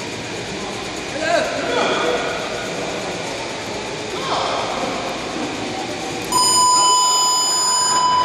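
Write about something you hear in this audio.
A man calls out commands in a large echoing hall.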